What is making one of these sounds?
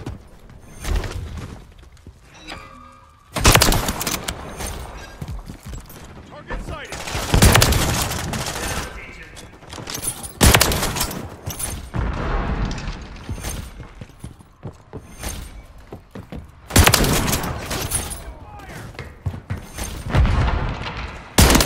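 Loud gunshots crack sharply, with booming echoes.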